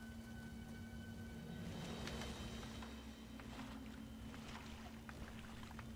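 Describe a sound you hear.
Footsteps splash through shallow water.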